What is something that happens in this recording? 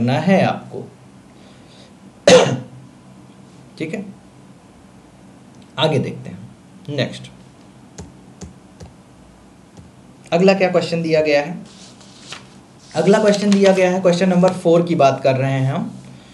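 A man speaks close to a microphone, explaining with animation in short bursts and pauses.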